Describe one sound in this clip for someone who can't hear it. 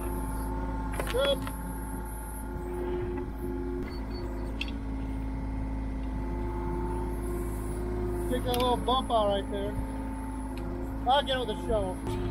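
Hydraulics of an excavator whine as the arm moves.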